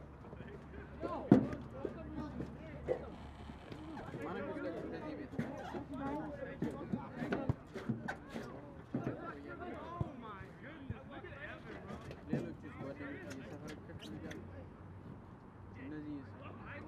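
Several men shout and call out to each other outdoors.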